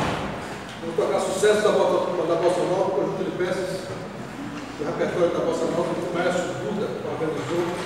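A brass ensemble plays a piece in an echoing room.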